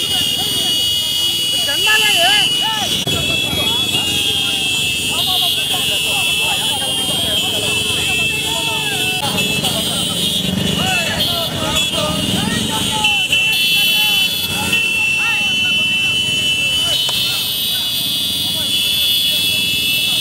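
Many motorcycle engines rumble and putter close by.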